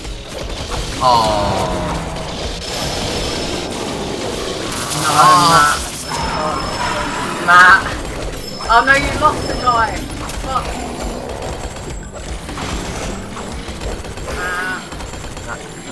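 Electronic effects warble and chirp up and down.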